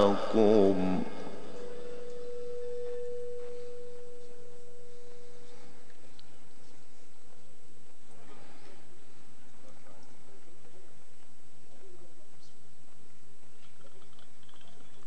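A crowd of men murmurs quietly in the background.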